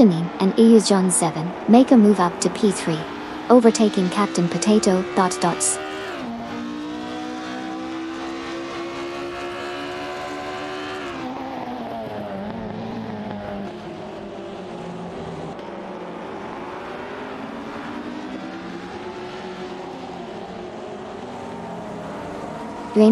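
Racing car engines whine at high revs, rising and falling in pitch as gears change.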